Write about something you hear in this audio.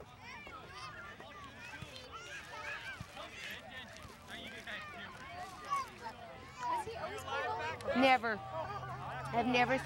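Young children shout and call out across an open field.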